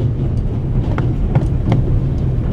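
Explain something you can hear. A fist knocks on a wooden door.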